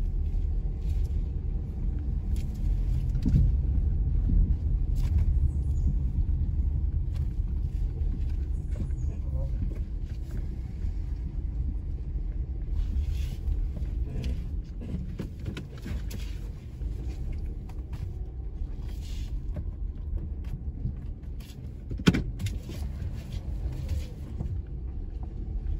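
Tyres crunch softly over pavement.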